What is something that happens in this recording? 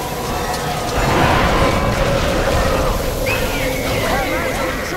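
A heavy explosion booms and splashes into water.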